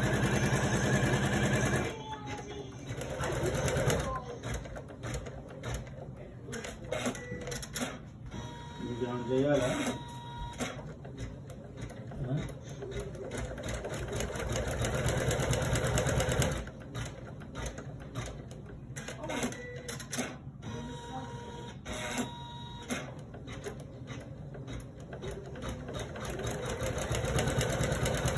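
An embroidery machine hums and stitches with a fast, steady rattle.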